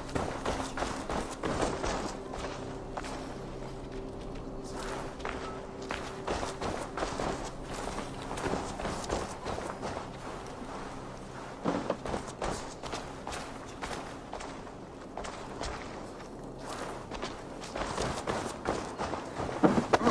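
Footsteps crunch on dirt and wooden planks.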